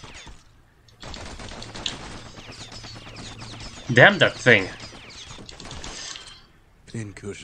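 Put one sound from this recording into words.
Gunshots crackle in quick bursts.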